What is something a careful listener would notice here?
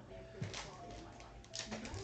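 Card boxes tap and rustle as they are set down.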